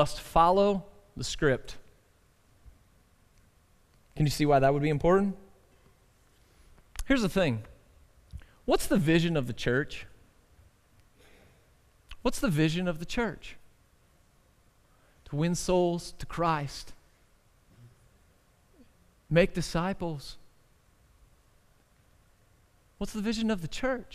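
A man speaks calmly into a headset microphone, in bursts with pauses.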